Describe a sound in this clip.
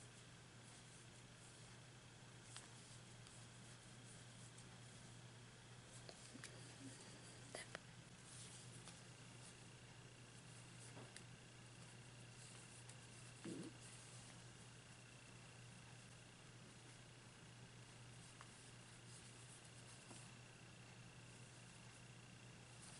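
Yarn rustles softly as a crochet hook works through stitches.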